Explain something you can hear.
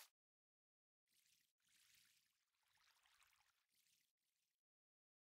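Water splashes and trickles as it flows out.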